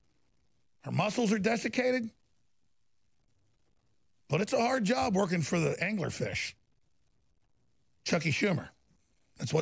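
A man speaks into a microphone in short, emphatic phrases.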